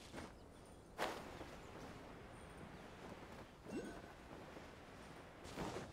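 Wind rushes past a glider.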